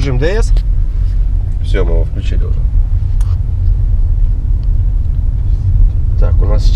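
A car engine hums with a low, steady rumble of road noise inside the car.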